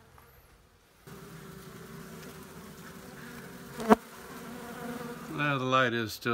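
Bees hum steadily in a low drone.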